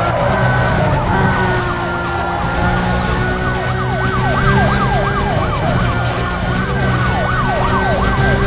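Police sirens wail close behind.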